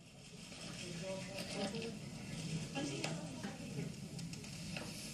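A woman reads out calmly and steadily through a microphone.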